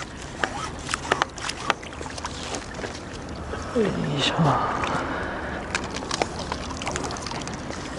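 A fish splashes in the water in a landing net.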